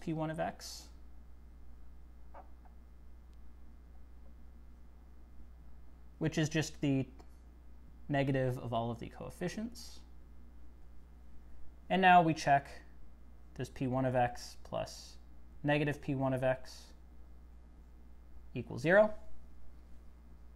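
A man speaks calmly and explains, close by, in short phrases.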